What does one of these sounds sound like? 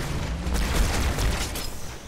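A plasma grenade explodes with a loud blast.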